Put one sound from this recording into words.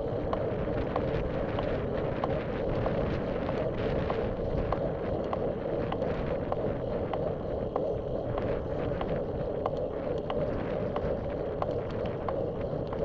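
Wind rushes steadily past, as if outdoors while moving.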